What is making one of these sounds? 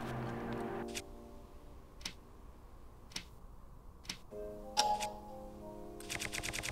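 Soft clicks tick one after another as a menu is scrolled.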